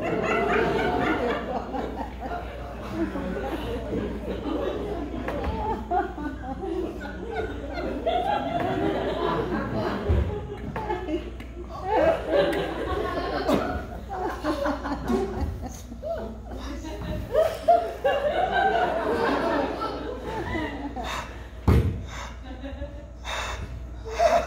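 A cast of actors sings together on a stage, heard from the audience in a large hall.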